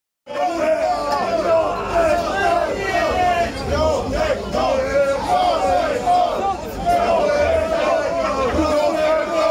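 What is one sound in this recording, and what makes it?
A heavy metal band plays loudly through a live sound system.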